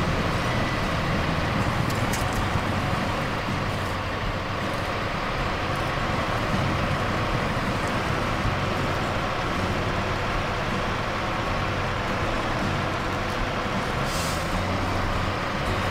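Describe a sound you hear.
Tyres squelch through mud.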